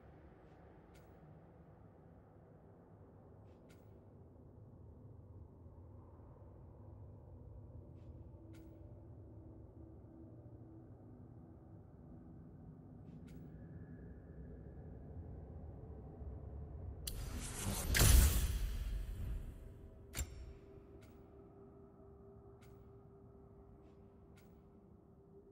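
Short soft clicks sound now and then as a menu selection moves.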